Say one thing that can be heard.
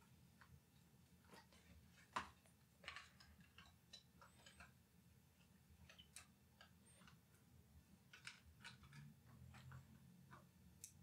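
Small hard parts click and tap as they are handled up close.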